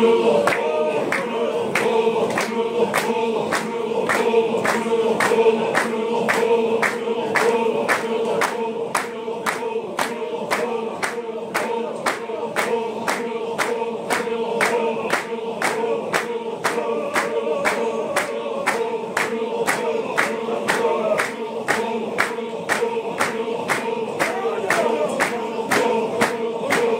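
Men stamp their feet in a quick, steady beat.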